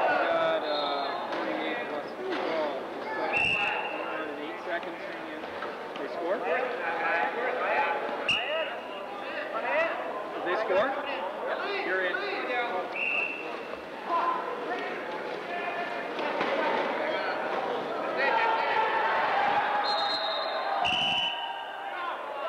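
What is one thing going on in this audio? Wheelchair tyres squeak sharply on a hard floor.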